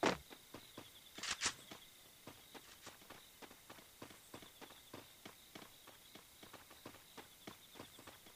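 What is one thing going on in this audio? Footsteps of a game character run quickly over grass.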